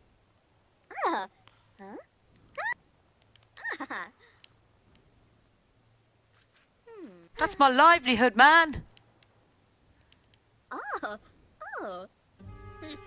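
A young woman talks with animation into a headset microphone.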